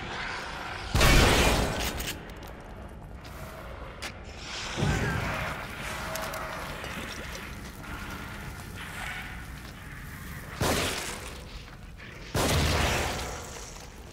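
A gun fires loud, echoing shots.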